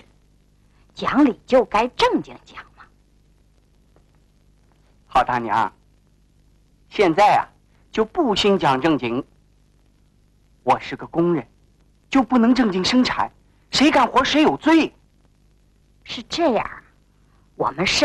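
An elderly woman speaks calmly.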